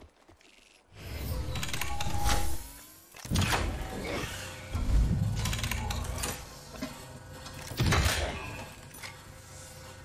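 A machine whirs and clunks as it makes an item.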